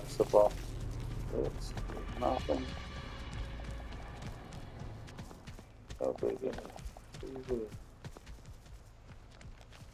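Footsteps run quickly over soft ground and grass.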